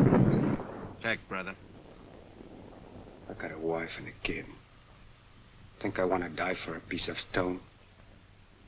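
A man speaks in a low, quiet voice close by.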